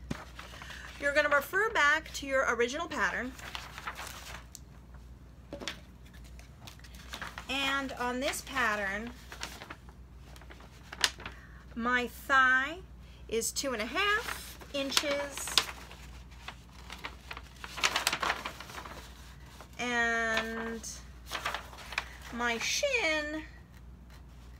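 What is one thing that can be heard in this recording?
A young woman talks calmly and closely, in bursts with pauses.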